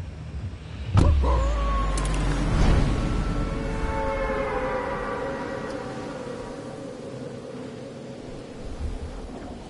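A sudden loud whoosh bursts out and slowly fades.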